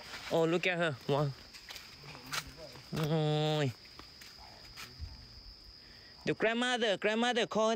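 An elephant walks with soft, heavy steps on dirt.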